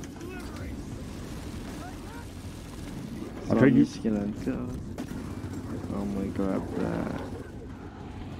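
Gunfire crackles from a game.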